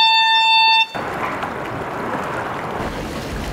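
Water splashes as people wade and thrash through a pool.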